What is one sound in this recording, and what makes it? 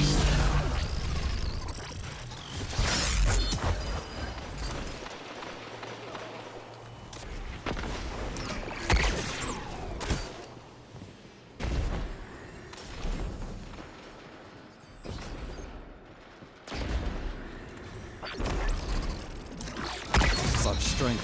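Game gunfire bursts loudly in short volleys.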